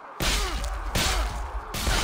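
An axe chops into armour with a heavy thud.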